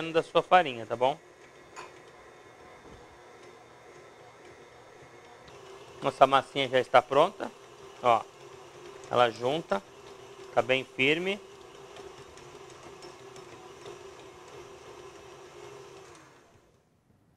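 A stand mixer hums steadily as it runs.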